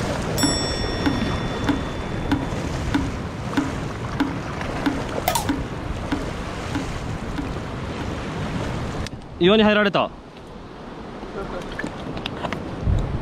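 Waves splash and wash against rocks close by.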